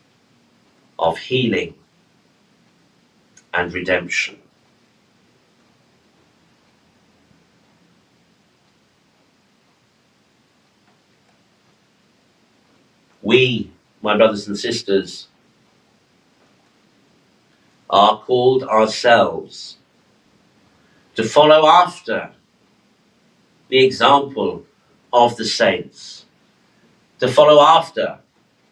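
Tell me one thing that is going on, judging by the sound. A middle-aged man speaks slowly and solemnly into a microphone, with long pauses.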